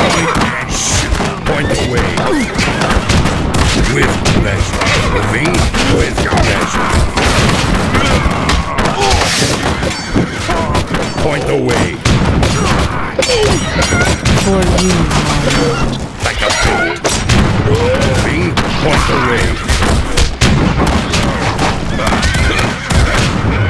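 Swords and weapons clash rapidly in a noisy battle.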